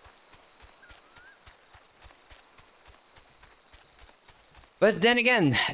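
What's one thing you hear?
Hooves patter softly in a steady rhythm.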